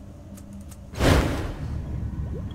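A soft whoosh sounds as an item is used.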